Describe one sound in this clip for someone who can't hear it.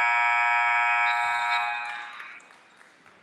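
A loud scoreboard horn blares in a large echoing arena, then cuts off.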